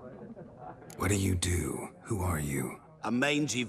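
A man with a low, gravelly voice asks questions calmly and close by.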